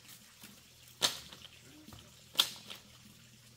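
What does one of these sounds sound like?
Bamboo clatters loudly as it is thrown down.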